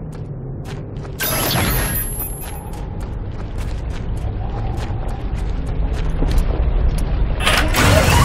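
Heavy boots crunch on rocky ground in steady footsteps.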